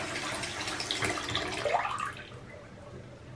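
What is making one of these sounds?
Water gurgles down a sink drain.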